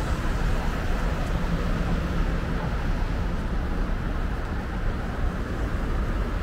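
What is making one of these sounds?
City traffic rumbles steadily nearby outdoors.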